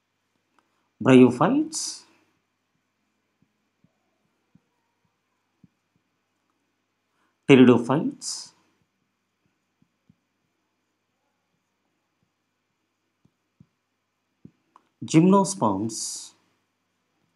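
A middle-aged man speaks calmly in short phrases, with pauses between them.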